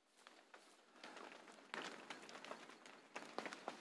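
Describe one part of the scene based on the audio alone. A body drags and scrapes slowly along the ground.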